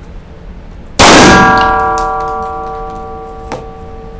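A pistol shot cracks loudly and echoes through an indoor range.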